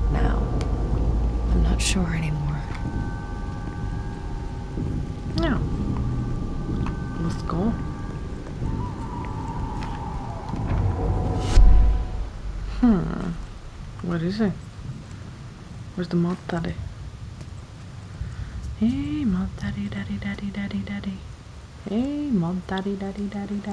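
A young woman talks quietly and calmly into a close microphone.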